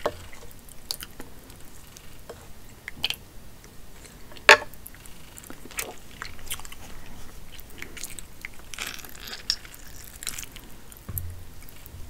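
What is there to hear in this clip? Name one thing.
Sauce squelches and drips as food is lifted.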